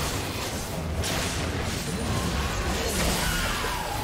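A monster roars and dies with a loud burst.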